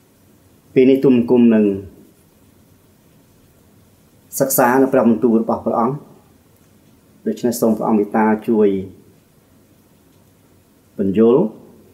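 A middle-aged man speaks slowly and solemnly into a close microphone, in short phrases with pauses.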